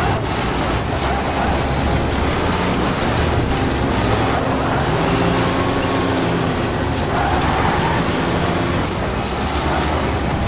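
Tyres crunch and rumble over rough ground.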